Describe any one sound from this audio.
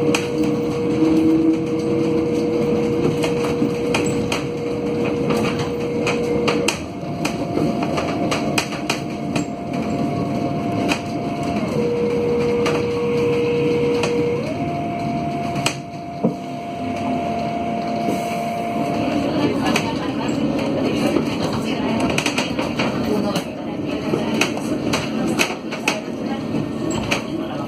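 The bus interior rattles and clicks over the road.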